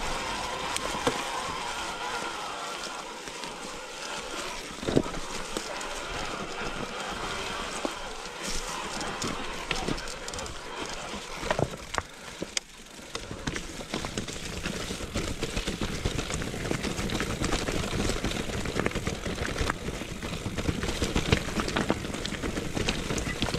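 Bicycle tyres crunch and rattle over a rocky forest trail.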